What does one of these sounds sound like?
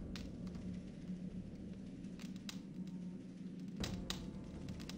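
A book's heavy pages fall open.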